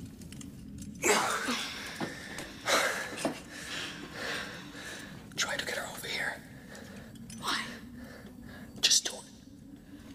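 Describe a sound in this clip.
A man speaks in a strained, breathless voice.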